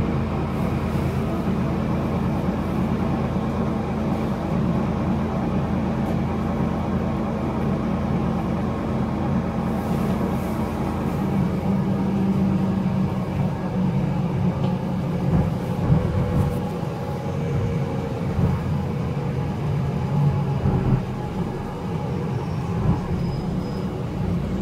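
The bus rattles and rumbles over the road.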